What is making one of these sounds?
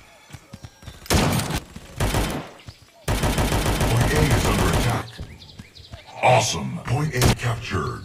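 A sniper rifle fires single loud shots.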